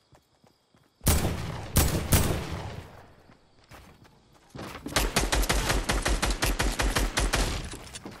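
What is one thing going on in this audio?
Wooden and stone building pieces snap into place with rapid loud clatters.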